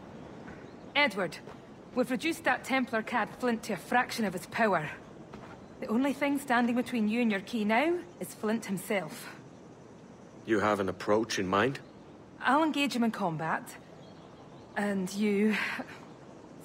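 A young woman speaks calmly and closely.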